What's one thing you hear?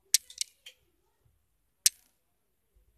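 Short sharp menu clicks sound as items are selected.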